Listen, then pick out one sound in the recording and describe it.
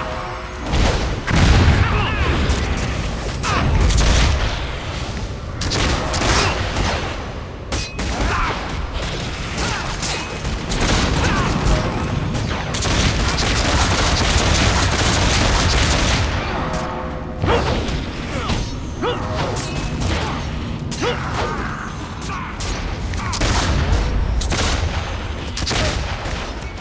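Spells crackle, whoosh and burst in a hectic fight.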